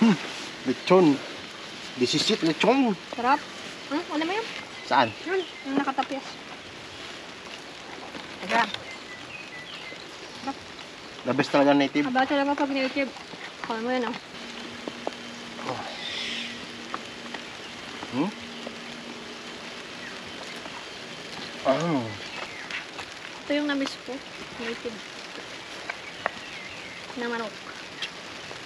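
A young woman talks casually up close.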